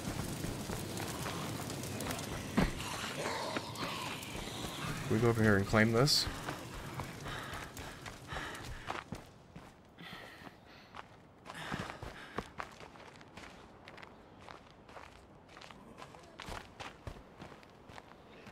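Footsteps crunch on gravel and pavement.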